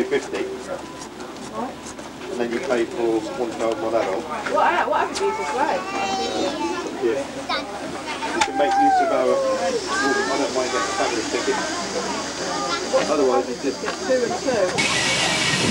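Women and children chat nearby outdoors.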